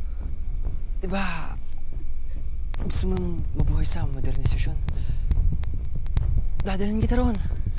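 A young man speaks in a worried voice.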